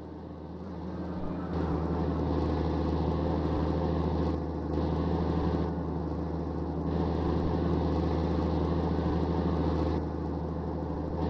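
Tyres roll and rumble on the road surface.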